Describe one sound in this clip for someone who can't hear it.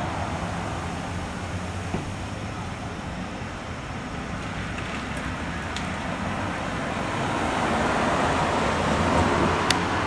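A car drives slowly along the street.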